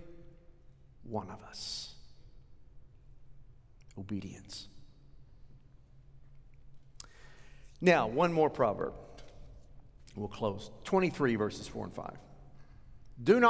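A middle-aged man speaks calmly through a microphone, pausing often.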